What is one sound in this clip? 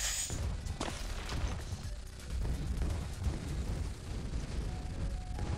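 Balloons pop in quick bursts.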